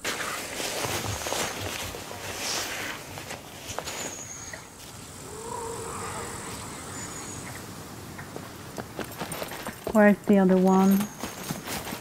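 Footsteps crunch through grass and gravel.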